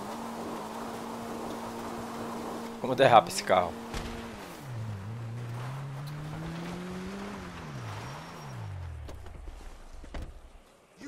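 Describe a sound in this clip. A car engine hums and revs as the car drives over rough ground.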